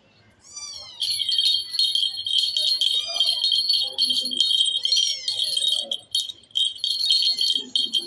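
A toy bell jingles and rattles.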